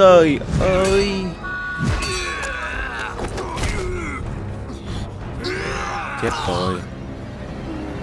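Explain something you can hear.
A man speaks tensely and gruffly, close by.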